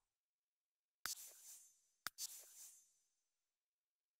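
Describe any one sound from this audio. Soft game interface chimes ring out and fade.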